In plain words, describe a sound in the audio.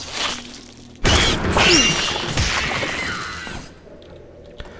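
A lightning spell crackles and bursts.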